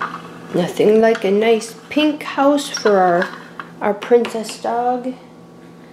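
A small plastic toy taps down on a hard surface.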